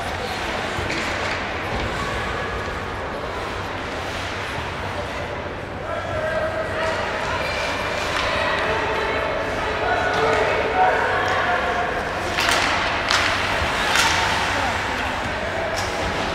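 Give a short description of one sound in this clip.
Skates scrape and hiss across ice.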